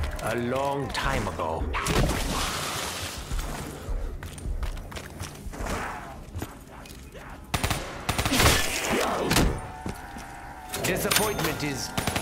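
Monsters growl and snarl nearby.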